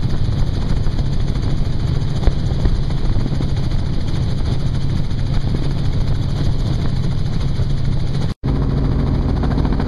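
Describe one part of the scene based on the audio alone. A helicopter engine and rotor roar steadily up close.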